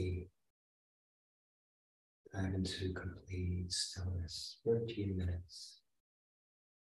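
A man speaks slowly and calmly, close to a microphone.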